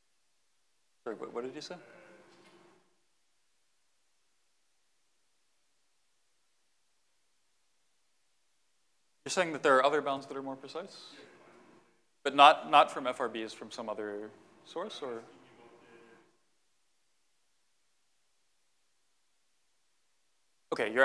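A man lectures calmly through a clip-on microphone, in bursts with long pauses.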